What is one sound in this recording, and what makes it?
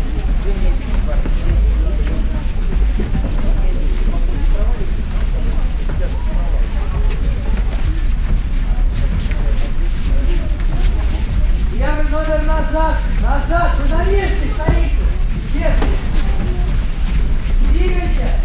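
Bare feet thud and shuffle on mats.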